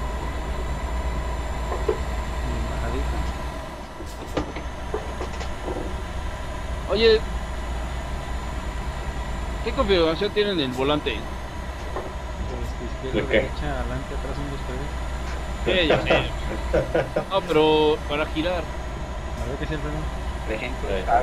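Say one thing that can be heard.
A truck engine drones steadily as it drives.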